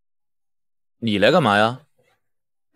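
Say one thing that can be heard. A man speaks with surprise.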